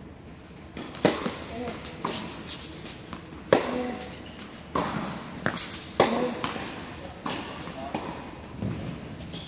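A tennis racket strikes a ball with sharp pops, echoing in a large indoor hall.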